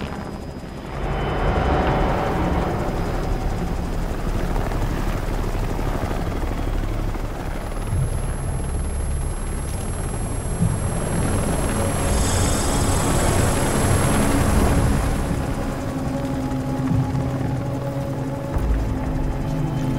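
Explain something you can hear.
Wind rushes loudly through an open helicopter door.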